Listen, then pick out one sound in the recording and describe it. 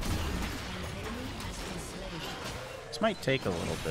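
Magic spell effects whoosh and crackle during a fight.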